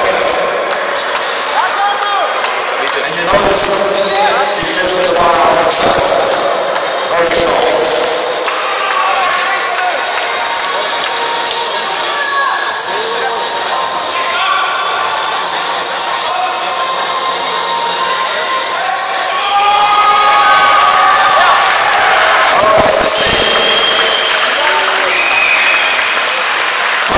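A crowd of men shouts encouragement in a large echoing hall.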